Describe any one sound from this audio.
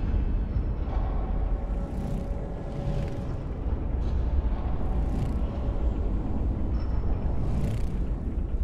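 A large machine rumbles with a deep, steady hum.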